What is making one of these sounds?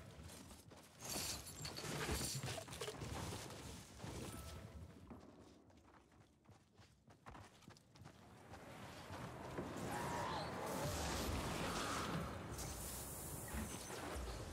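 A bright magical shimmer chimes and sparkles.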